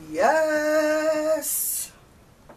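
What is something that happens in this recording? A woman sings a long, steady note close by.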